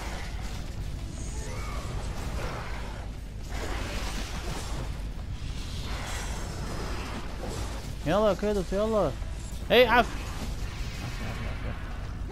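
Blows strike with heavy thuds.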